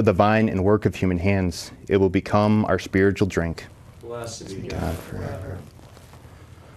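A man speaks calmly through a microphone in a reverberant hall.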